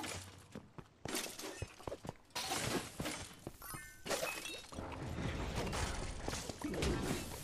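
Weapons clash and magic blasts burst in a fast fight.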